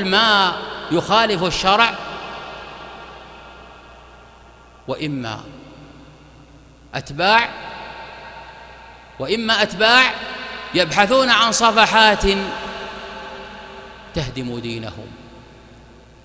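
A man preaches forcefully into a microphone in short bursts, his voice echoing through a reverberant hall.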